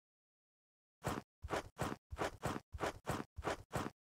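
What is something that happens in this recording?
Footsteps crunch steadily over grass.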